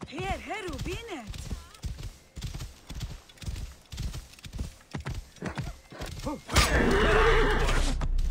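A camel's hooves thud steadily on a dirt path.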